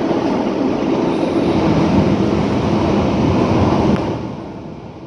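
A passing freight train roars close by.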